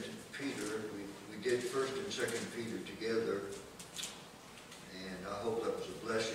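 An elderly man reads aloud calmly into a microphone in a room with a slight echo.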